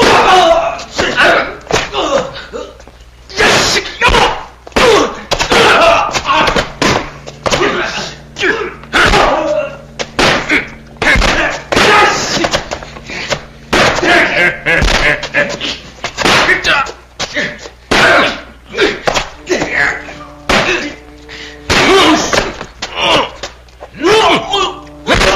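Fists land on bodies with sharp thuds, again and again.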